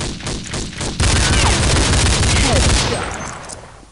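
Pistol shots ring out in rapid bursts.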